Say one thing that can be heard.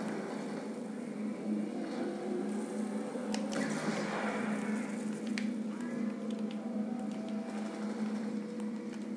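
Explosions boom and rumble from a video game playing through television speakers.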